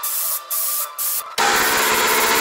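An airbrush hisses in short bursts.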